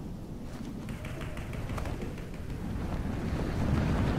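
Wind rushes past during a fall through the air.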